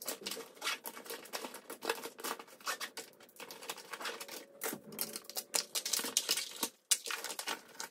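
Plastic packaging crinkles and rustles close by.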